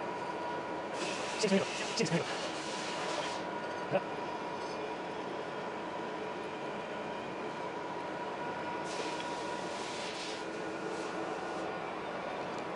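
A cutting tool scrapes against a turning metal part.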